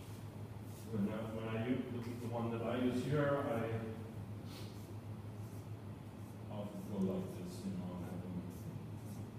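A man speaks calmly to a small group.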